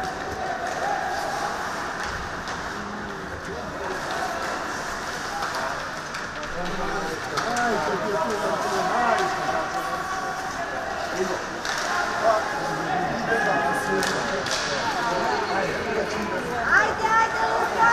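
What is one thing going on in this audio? A crowd of voices cheers and shouts in a large echoing rink.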